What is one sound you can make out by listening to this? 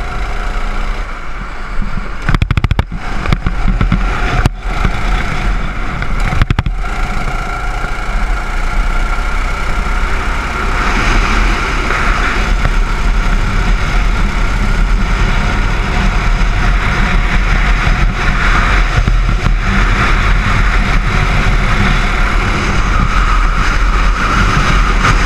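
A small kart engine buzzes loudly and steadily, rising and falling in pitch as it speeds up and slows down.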